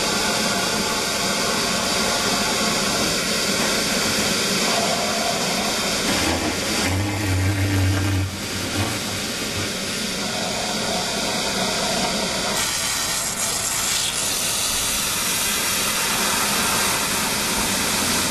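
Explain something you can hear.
A paddle stirs and sloshes liquid in a metal drum.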